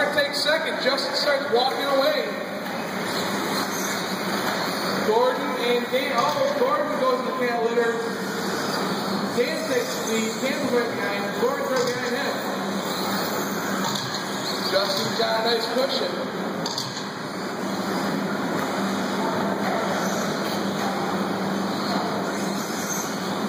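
Small electric model cars whine and buzz.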